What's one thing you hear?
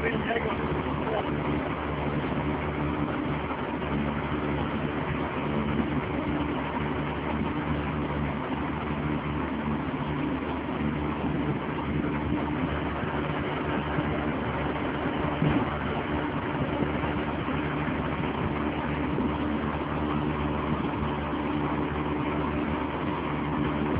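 Water splashes and rushes along a boat's hull.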